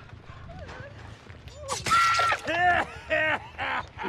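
A blade slashes and strikes with a sharp thud.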